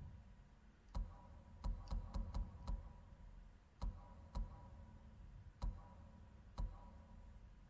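Short menu clicks tick as a selection moves through a list.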